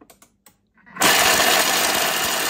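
A food processor motor whirs loudly at high speed.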